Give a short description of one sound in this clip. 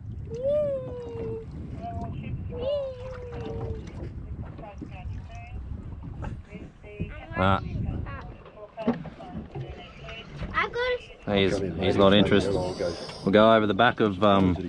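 Water laps gently against the side of a boat.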